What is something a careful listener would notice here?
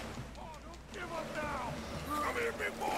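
A man calls out urgently from a short distance.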